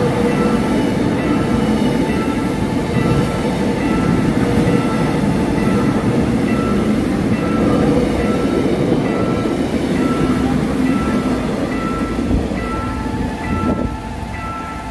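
An electric commuter train rumbles past over a level crossing.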